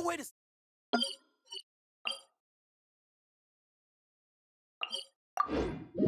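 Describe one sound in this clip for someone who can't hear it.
Soft menu clicks and chimes sound.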